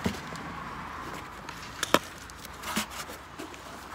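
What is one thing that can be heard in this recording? Wood knocks and scrapes as a lid is set on a box.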